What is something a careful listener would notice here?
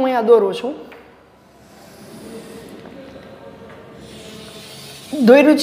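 Chalk scrapes and taps on a blackboard.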